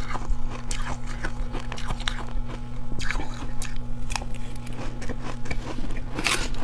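A young woman crunches icy food loudly and close to a microphone.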